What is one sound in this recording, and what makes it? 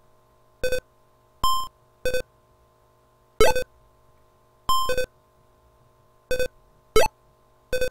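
A retro video game plays short electronic beeps and buzzing tones.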